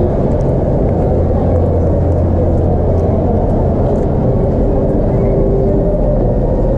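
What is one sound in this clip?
Wheels rumble steadily over a smooth tiled floor.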